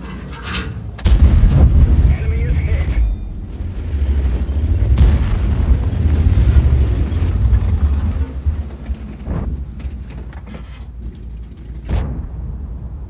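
A tank cannon fires with a loud, sharp boom.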